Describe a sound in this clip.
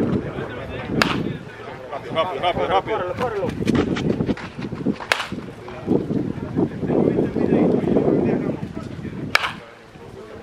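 A bat cracks sharply against a baseball, again and again.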